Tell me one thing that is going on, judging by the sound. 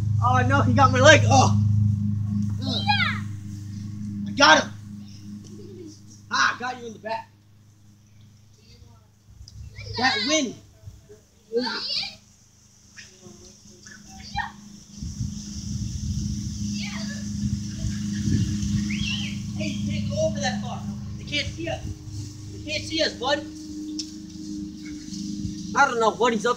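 Young children shout and laugh nearby outdoors.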